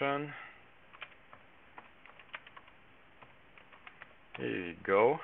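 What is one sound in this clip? Computer keys click in quick taps.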